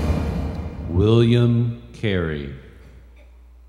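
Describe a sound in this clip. A man wails loudly in a rising and falling voice.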